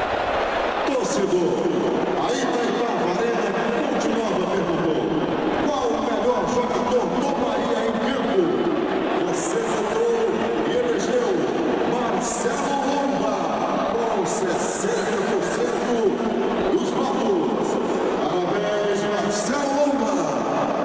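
A crowd sings and chants together.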